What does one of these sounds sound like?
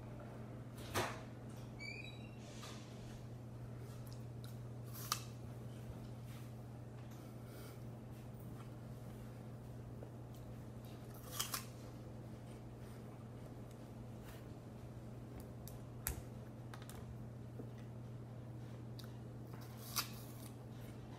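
A teenage boy bites into a crisp raw apple with a crunch.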